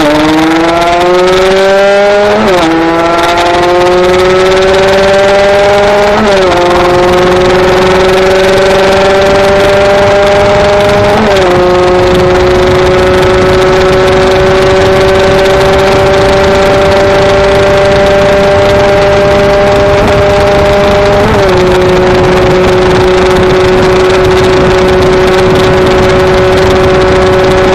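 A motorcycle engine roars loudly, revving up through the gears with brief drops at each shift.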